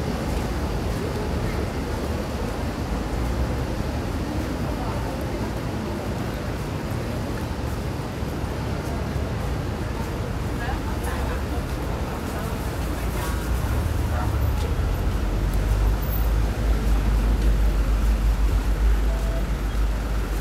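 Steady city street noise hums outdoors.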